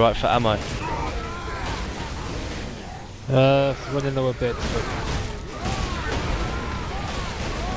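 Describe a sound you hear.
Heavy gunfire rattles in bursts.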